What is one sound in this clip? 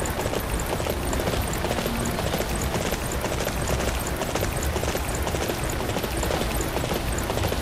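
Hooves gallop rhythmically over dirt.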